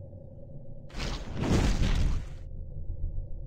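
A magic spell bursts with a crackling blast.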